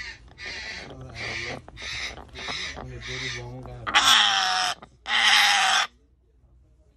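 A parrot screeches loudly in harsh, repeated bursts, ending in two long shrieks.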